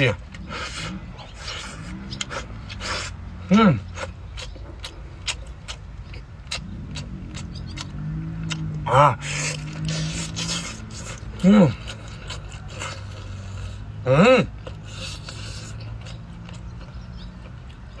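A young man slurps and chews food noisily.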